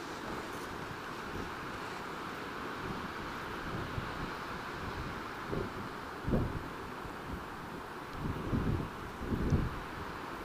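Wind gusts and buffets against the microphone outdoors.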